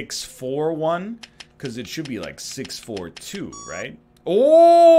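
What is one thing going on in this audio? Keypad buttons beep as a code is entered.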